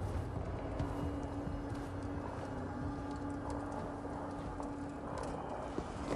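Footsteps crunch over snow and stone.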